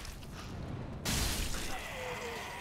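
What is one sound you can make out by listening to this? A sword slashes and strikes with a loud crash.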